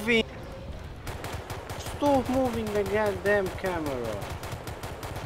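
A rifle fires rapid shots close by.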